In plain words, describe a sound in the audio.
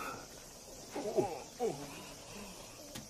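Elderly men exclaim in surprise.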